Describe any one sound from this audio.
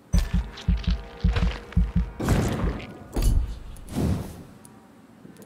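Heavy thumping menu sounds beat in quick bursts as upgrades unlock.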